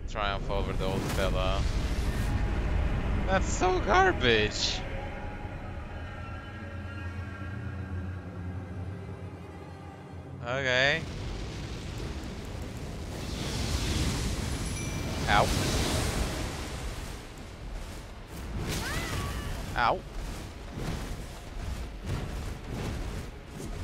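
Flames roar and whoosh.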